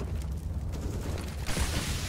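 Flames roar and crackle as a fire burns.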